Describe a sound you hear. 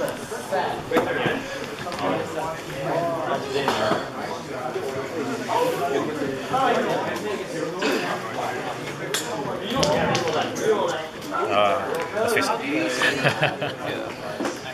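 Playing cards are shuffled and placed on a table with soft slaps.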